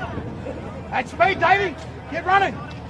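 Young men shout loudly to each other on the field.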